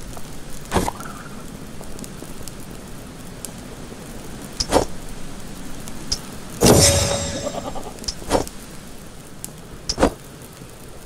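Short game menu clicks and chimes sound now and then.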